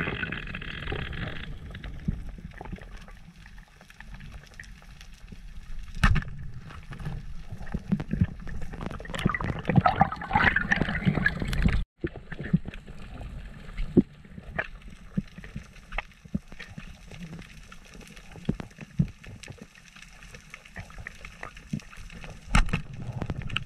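Water swishes and rumbles in a muffled way underwater as a diver swims.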